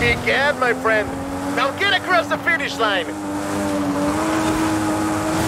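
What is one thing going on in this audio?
A sports car engine hums steadily at high speed.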